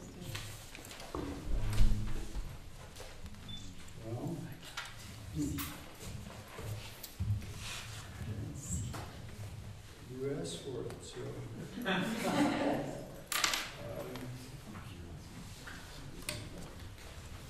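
An elderly man speaks calmly into a microphone, heard over loudspeakers in an echoing hall.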